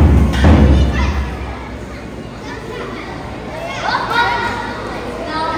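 Folk music with singing plays through loudspeakers in a hall.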